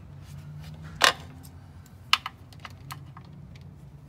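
A ratchet wrench clicks on a bolt.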